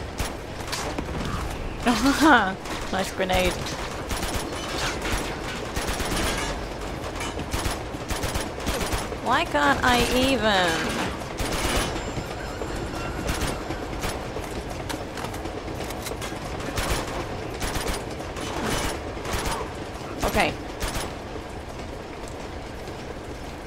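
Gunfire from a game rattles in quick bursts.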